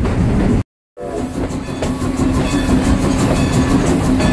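A steam locomotive chugs and hisses up close.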